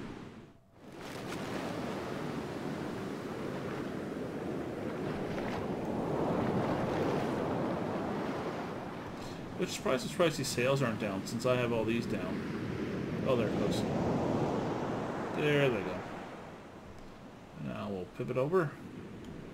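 Waves wash and splash against a sailing ship's hull.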